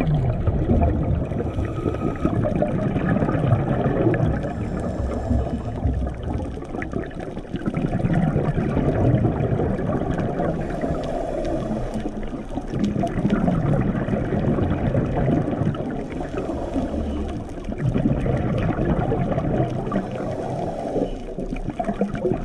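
Water rumbles and swirls, heard muffled underwater.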